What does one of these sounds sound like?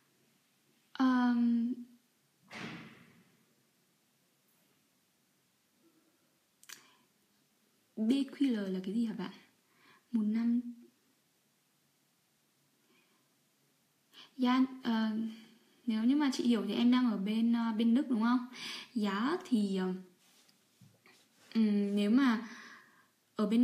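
A young woman speaks calmly and close by, with pauses.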